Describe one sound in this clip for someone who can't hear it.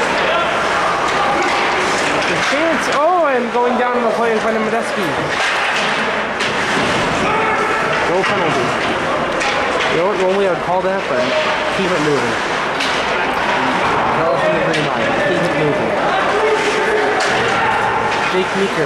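A crowd of spectators shouts and cheers in a large echoing rink.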